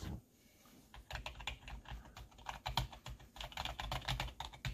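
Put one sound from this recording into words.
Fingers tap rapidly on keyboard keys, clicking.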